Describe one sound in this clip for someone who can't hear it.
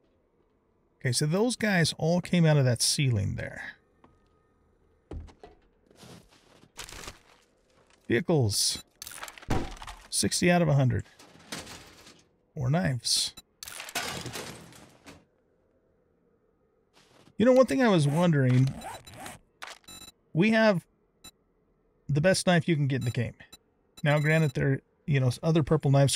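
An elderly man talks with animation into a close microphone, in bursts with pauses.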